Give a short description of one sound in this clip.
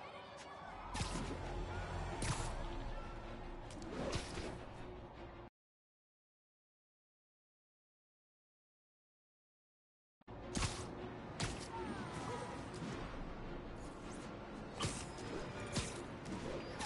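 A web line snaps and whooshes through the air in quick bursts.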